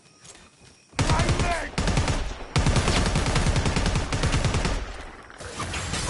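An automatic rifle fires rapid bursts close by.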